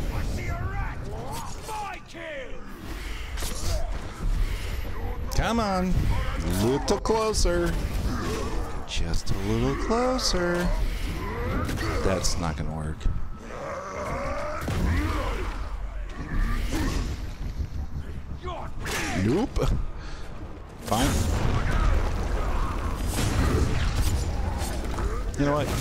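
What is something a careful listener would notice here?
Blades clash and slash in a fast fight.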